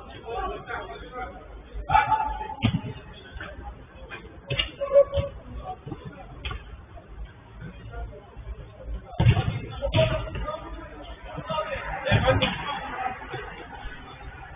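Men shout and call out to each other across a large echoing hall.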